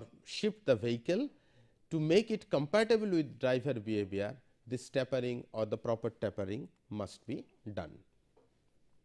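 A middle-aged man speaks calmly into a microphone, lecturing.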